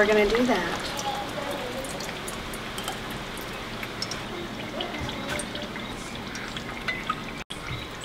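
Liquid trickles through a strainer into a metal bowl.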